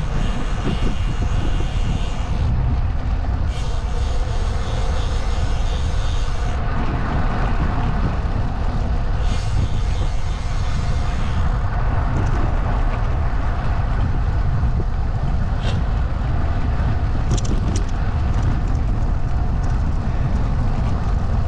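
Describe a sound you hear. Tyres roll steadily over rough asphalt.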